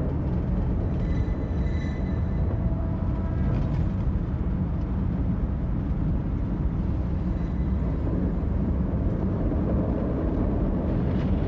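A car rumbles along a dirt road, heard from inside.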